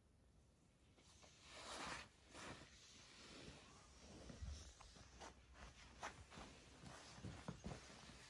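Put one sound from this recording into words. A towel rustles as it is shifted and laid down.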